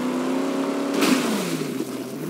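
A heavy metal crash sounds as a car strikes a trailer.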